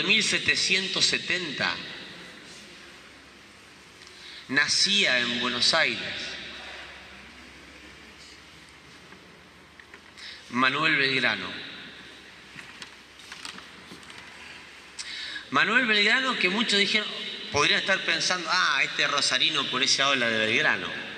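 A man speaks calmly into a microphone, amplified through loudspeakers in a large echoing hall, with pauses between phrases.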